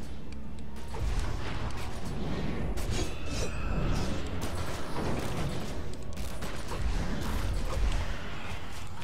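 Magical blasts and hits crackle and thud during a fight.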